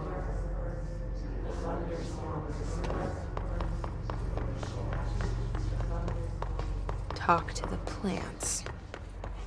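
Footsteps run quickly across a hard floor.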